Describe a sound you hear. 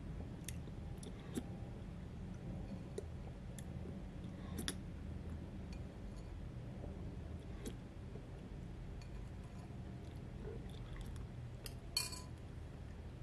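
A spoon clicks against a plastic container.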